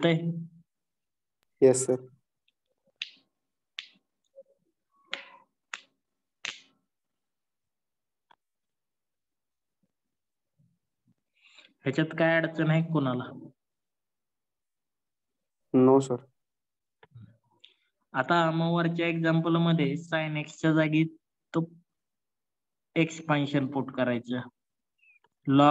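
A man explains calmly into a close microphone, pausing often.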